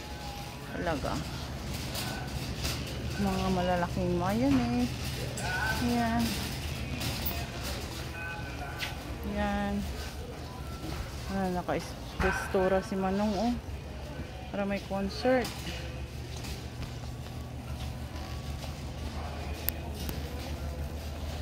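A shopping cart rolls and rattles over a hard floor.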